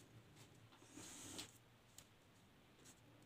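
Tape peels off a roll with a soft rip.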